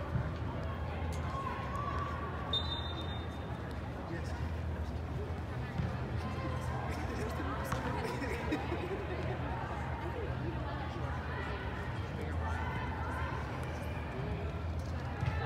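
Young women shout and call to each other across a large echoing hall.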